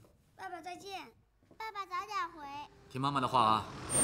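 A young girl calls out brightly.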